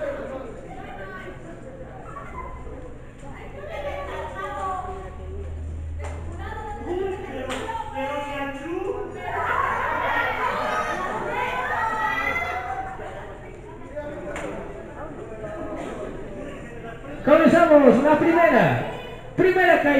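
A crowd of spectators talks and shouts.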